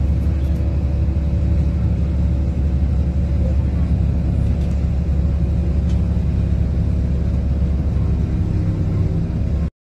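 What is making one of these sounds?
A car engine hums low and steady from inside a moving vehicle.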